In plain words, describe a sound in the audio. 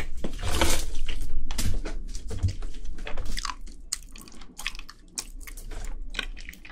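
Crispy fried chicken crunches and crackles up close as it is torn apart.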